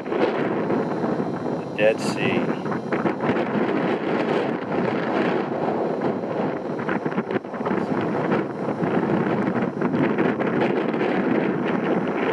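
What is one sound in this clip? Wind gusts and buffets across the microphone outdoors.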